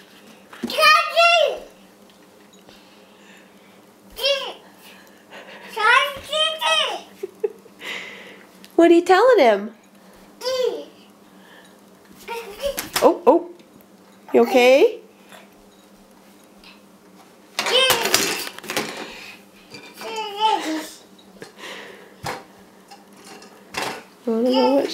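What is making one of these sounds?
A toddler babbles and squeals in high bursts close by.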